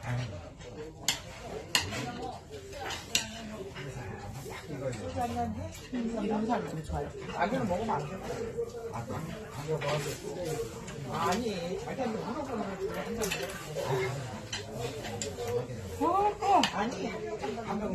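A young woman chews food close to a lapel microphone.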